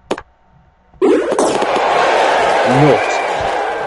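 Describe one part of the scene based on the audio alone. A stadium crowd cheers loudly after a goal.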